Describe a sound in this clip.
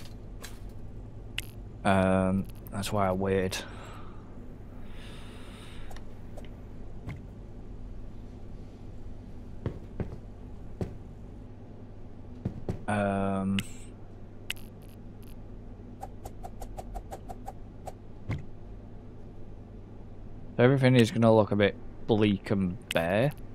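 Short soft interface clicks sound now and then.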